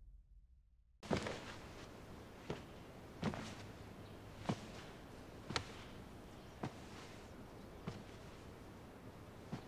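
Slow footsteps echo on a hard floor in a large hall.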